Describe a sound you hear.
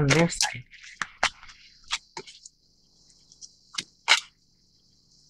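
Cards tap and slide softly onto a table.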